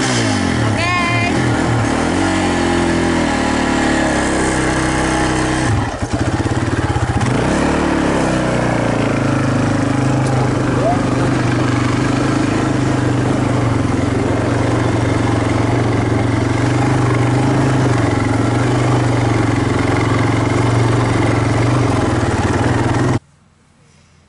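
An engine of an off-road quad bike rumbles loudly up close, revving up and down.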